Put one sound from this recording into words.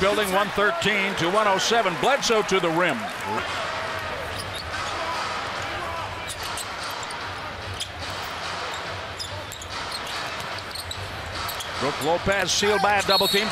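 A large indoor crowd murmurs steadily in an echoing arena.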